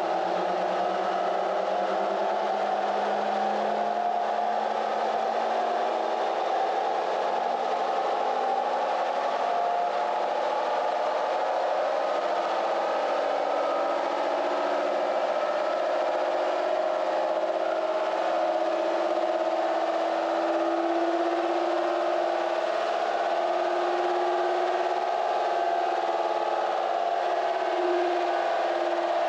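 Rollers whine under the spinning wheels.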